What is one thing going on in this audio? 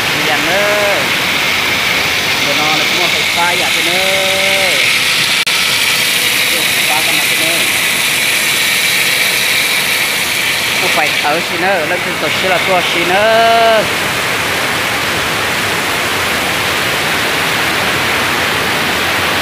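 Water rushes and splashes loudly outdoors.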